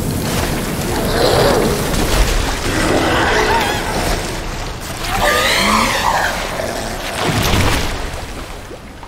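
A creature screeches and roars in pain.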